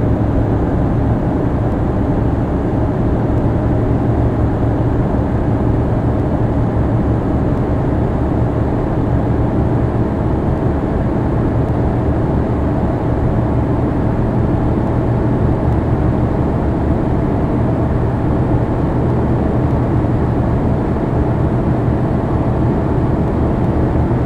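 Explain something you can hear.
A bus engine drones steadily.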